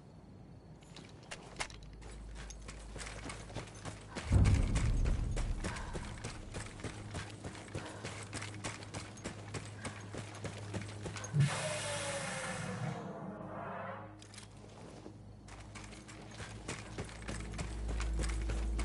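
Footsteps crunch quickly on dirt and gravel.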